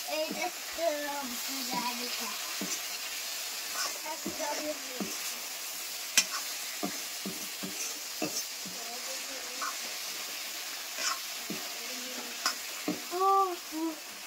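A spatula scrapes and clinks against a metal pan.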